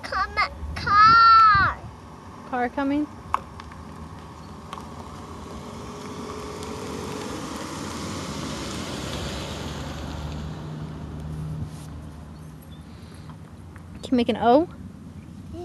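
A young child speaks and squeals in high bursts close by.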